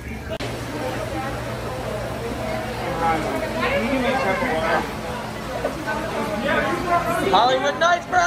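A crowd of people chatters in an echoing hall.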